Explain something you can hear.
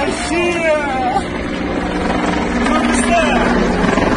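A helicopter's rotor thrums steadily overhead.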